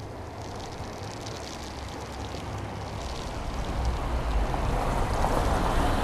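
A car engine hums as a car drives slowly over snow.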